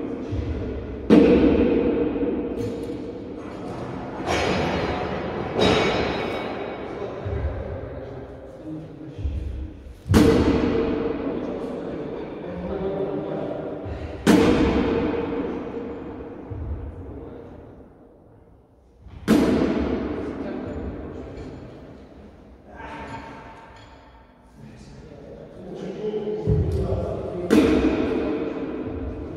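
A man talks calmly nearby in an echoing hall.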